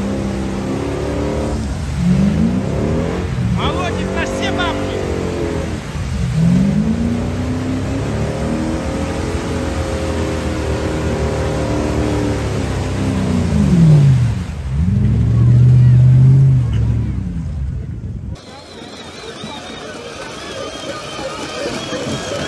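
Thick mud splashes and sprays around churning wheels.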